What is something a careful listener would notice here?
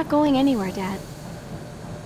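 A young girl speaks softly and sadly, close by.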